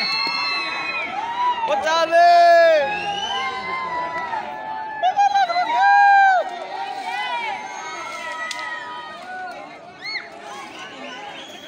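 A crowd of young men and women shouts and cheers outdoors.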